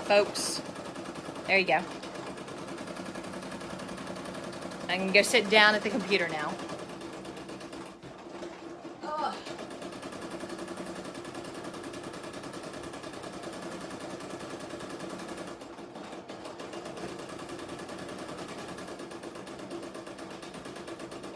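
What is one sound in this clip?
An embroidery machine hums and rattles steadily as its needle stitches fast.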